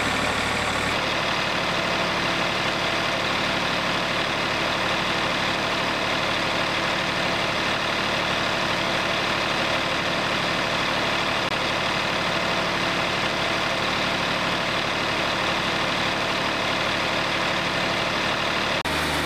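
A sawmill engine runs with a loud, steady roar.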